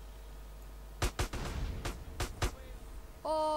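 Gunshots fire in quick succession.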